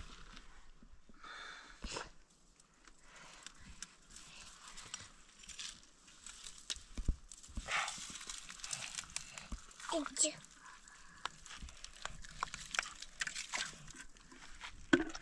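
Hands scrape and rustle in damp soil and pebbles.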